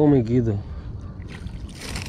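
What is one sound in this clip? A fishing reel clicks as its line is wound in.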